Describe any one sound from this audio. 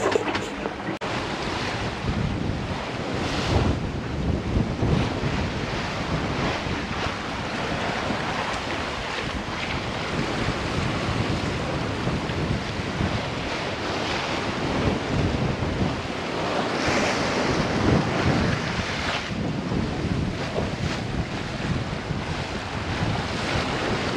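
Waves splash against a sailing boat's hull.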